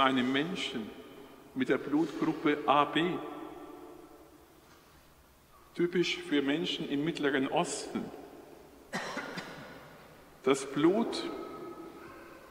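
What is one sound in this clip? A man speaks slowly and solemnly through a microphone, echoing in a large reverberant hall.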